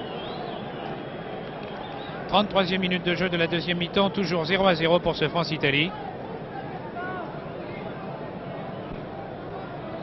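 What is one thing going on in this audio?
A crowd murmurs in a large open stadium.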